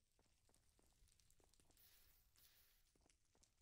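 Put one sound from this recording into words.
A stone block cracks and breaks apart.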